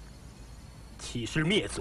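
A man speaks quietly, close by.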